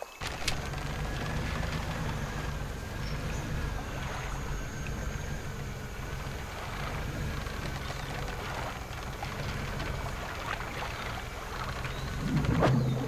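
A small boat engine hums steadily over water.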